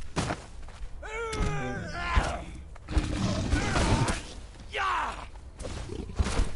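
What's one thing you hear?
A big cat snarls and growls.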